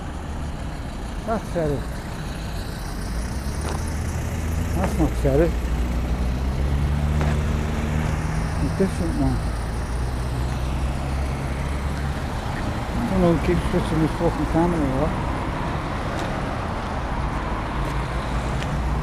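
A car engine hums nearby as a car drives slowly past.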